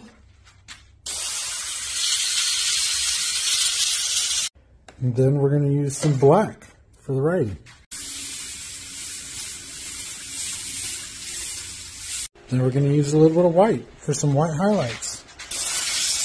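An airbrush sprays paint with a steady hiss, in bursts.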